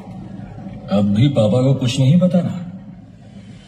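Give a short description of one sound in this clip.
An older man speaks forcefully and close by.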